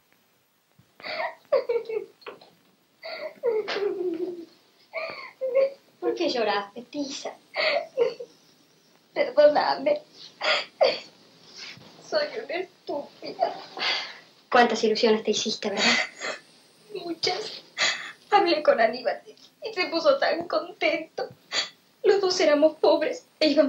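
A woman speaks anxiously and with animation.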